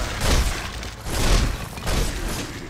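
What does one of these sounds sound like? Fiery bolts whoosh past and burst.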